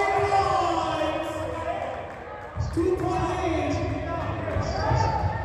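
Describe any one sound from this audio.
A crowd of people chatters in a large echoing gym.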